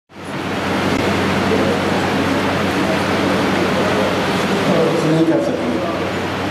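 Several men talk in a noisy, busy crowd.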